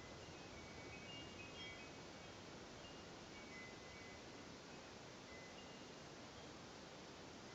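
A long-necked lute is plucked softly.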